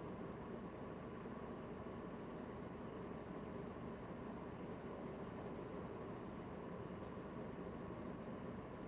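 A car engine idles steadily from inside the car.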